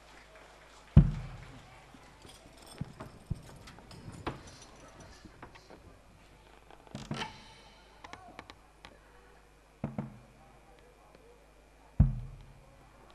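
Hand drums are struck with a few sharp, booming beats.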